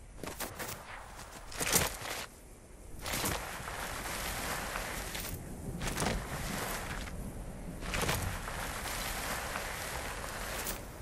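Quick footsteps run over grass and dirt.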